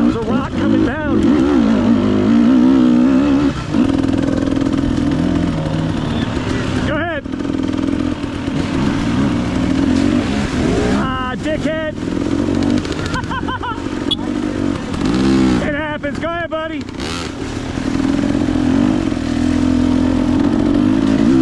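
A dirt bike engine drones close by and revs up and down.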